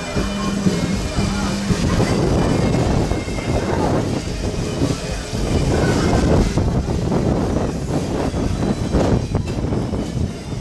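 Wind blows loudly outdoors.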